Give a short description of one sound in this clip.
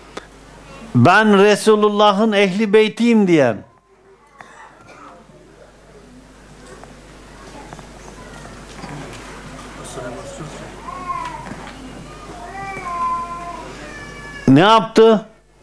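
An elderly man chants in a melodic voice through a microphone, close by.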